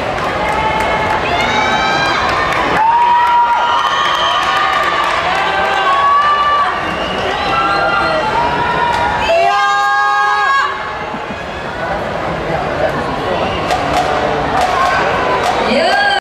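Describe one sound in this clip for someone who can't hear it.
A brass band plays loudly in a large echoing arena.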